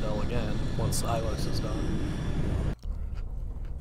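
A spaceship engine roars loudly.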